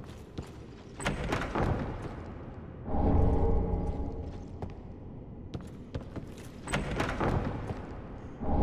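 A heavy wooden chest creaks open.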